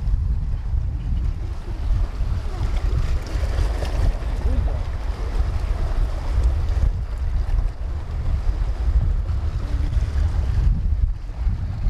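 Waves splash and wash against rocks close by.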